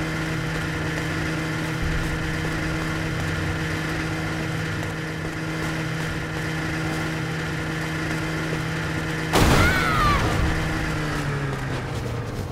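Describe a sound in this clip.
A snowmobile engine drones steadily.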